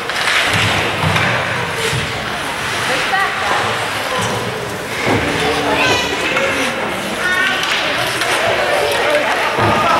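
A crowd of spectators chatters in a large echoing rink.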